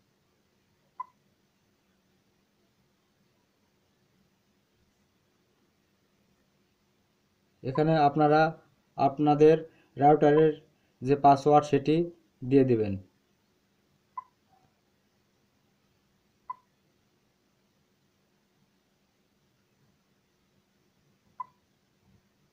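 A device gives short electronic beeps as keys are tapped.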